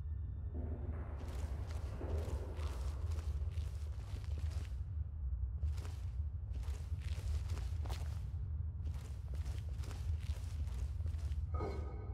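Footsteps thud on a stone floor in an echoing space.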